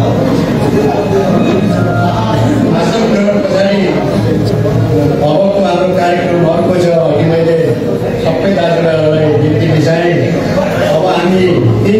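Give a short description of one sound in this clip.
A man speaks steadily through a loudspeaker in a large echoing hall.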